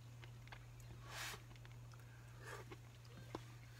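A person slurps soup up close.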